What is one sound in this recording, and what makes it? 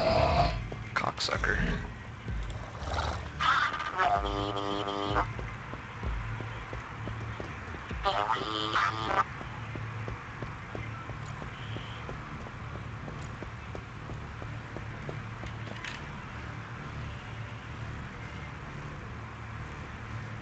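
A low electronic drone hums steadily.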